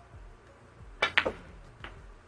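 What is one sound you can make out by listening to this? A cue tip strikes a ball with a sharp click.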